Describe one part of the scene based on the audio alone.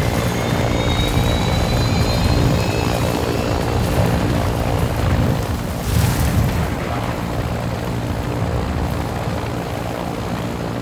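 An aircraft engine drones with a deep, steady rumble.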